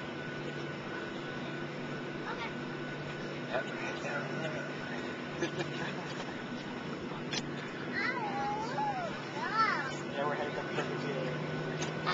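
Engine and air noise drone steadily inside a jet airliner cabin in flight.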